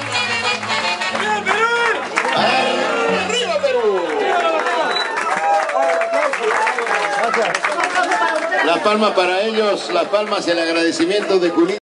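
Lively music with singing plays loudly through loudspeakers.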